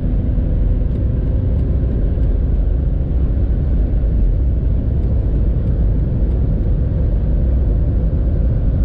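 A car engine drones steadily as the car speeds up.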